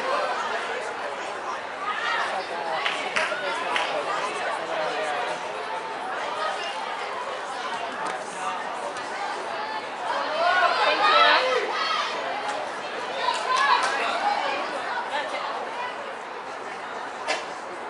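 Young women shout and call out to each other across an open field.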